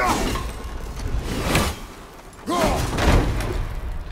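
An axe thuds into wood.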